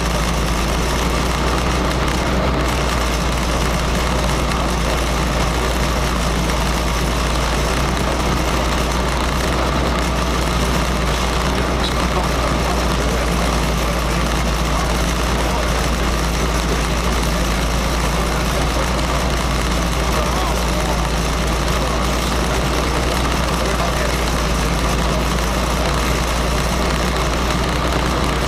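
A car engine idles steadily, heard from inside the car.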